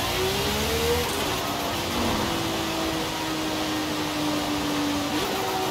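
A sports car engine roars at high speed, with pitch rising and falling as gears change.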